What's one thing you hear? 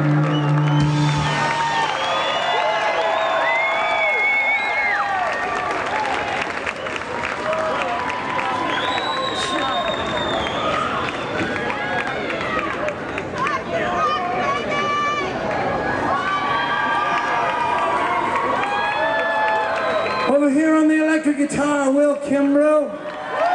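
A rock band plays loudly with electric guitars and drums.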